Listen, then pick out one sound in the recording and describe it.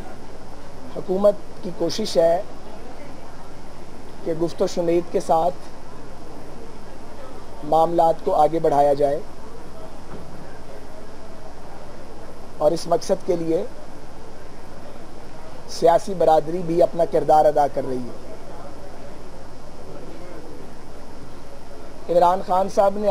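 A middle-aged man speaks calmly into microphones, in short bursts with pauses.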